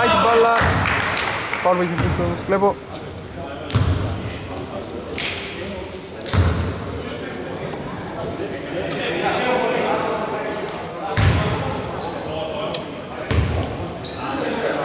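Men shout and call out across the court.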